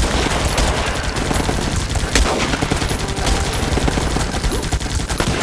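Explosions boom repeatedly.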